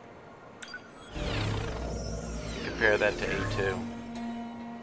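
A magical burst shimmers and whooshes.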